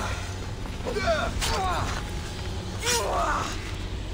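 A spear strikes hard with a sudden crash.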